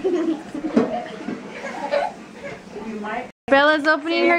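A young girl laughs and talks cheerfully close by.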